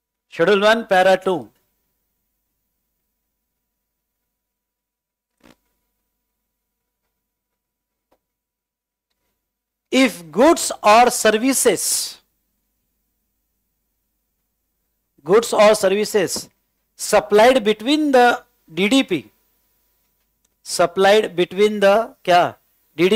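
A middle-aged man speaks calmly and clearly into a close microphone, pausing between phrases.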